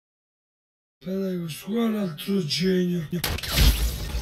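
A young man speaks in a sing-song voice close to a microphone.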